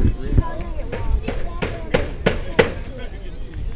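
Spectators clap their hands in an even rhythm.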